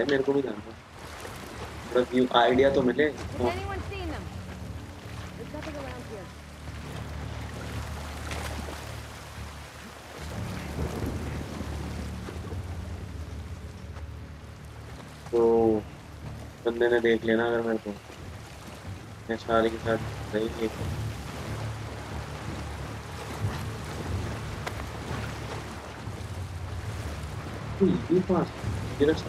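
A young man talks close to a microphone in short bursts.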